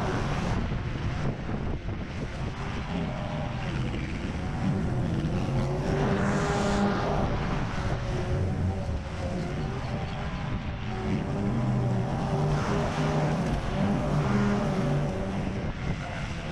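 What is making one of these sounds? A petrol lawn mower engine drones steadily, rising and falling as it works.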